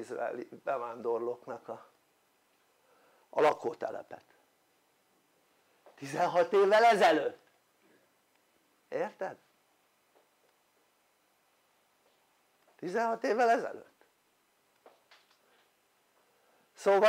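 An elderly man speaks calmly in short phrases with long pauses.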